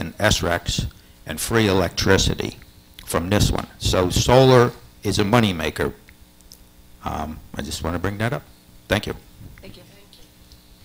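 An elderly man speaks into a microphone, heard through a loudspeaker in a large room.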